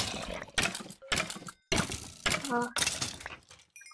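A pickaxe chips at stone blocks.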